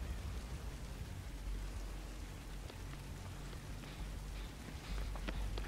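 A fire crackles and roars nearby.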